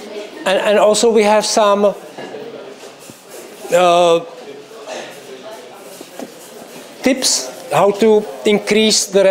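A man speaks with animation into a microphone, heard through a loudspeaker in a large room.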